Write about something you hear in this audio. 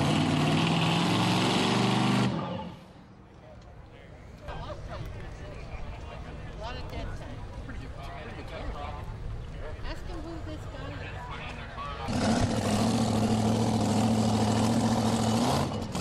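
A race car engine roars loudly at full throttle.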